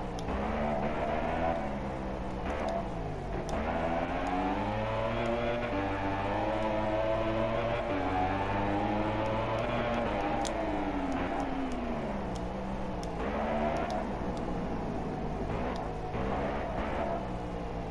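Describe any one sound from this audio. A motorcycle engine revs high and drops as the bike shifts gears.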